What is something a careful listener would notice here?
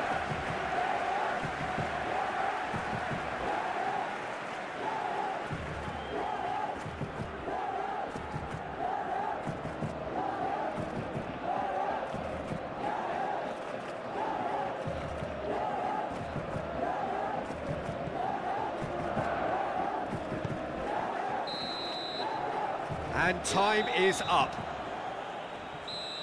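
A large stadium crowd chants and cheers in a steady rhythm.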